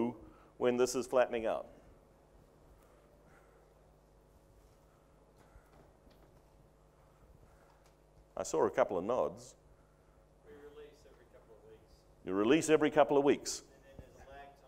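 A middle-aged man speaks calmly into a microphone in short bursts with pauses.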